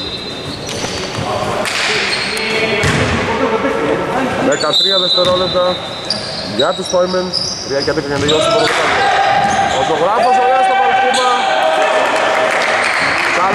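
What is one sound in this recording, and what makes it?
Sneakers squeak sharply on a wooden floor in a large echoing hall.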